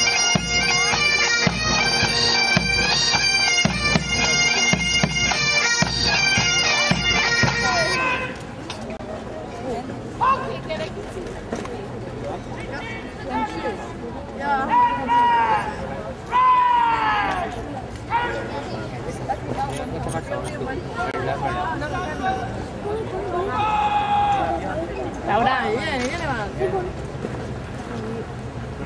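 A pipe band plays bagpipes loudly nearby.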